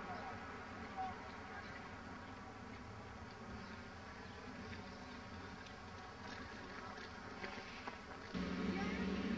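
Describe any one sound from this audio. Footsteps scuff along a paved path nearby.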